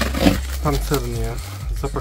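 A utility knife slices through packing tape and cardboard.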